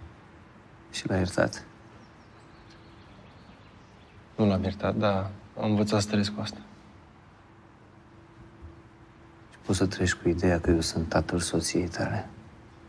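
An older man speaks quietly and earnestly up close.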